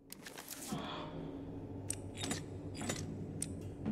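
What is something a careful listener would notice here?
Metal dials click as they are turned.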